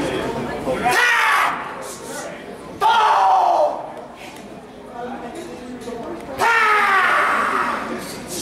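A young man shouts sharply in loud bursts.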